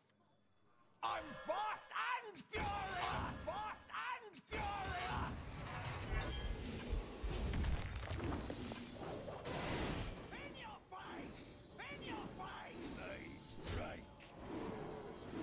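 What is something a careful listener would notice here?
Game sound effects whoosh and clash.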